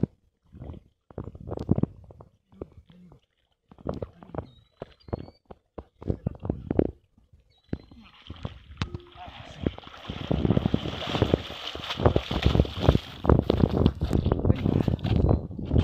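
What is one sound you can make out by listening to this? Water splashes around a man wading.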